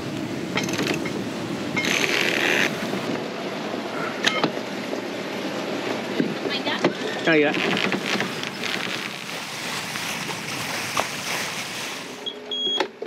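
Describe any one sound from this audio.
Wind rushes steadily outdoors.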